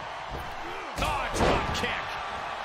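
A body slams hard onto a wrestling ring mat with a loud thud.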